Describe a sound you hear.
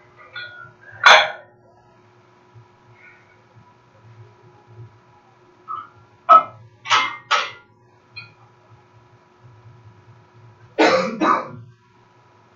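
Metal weight plates clank and bang loudly.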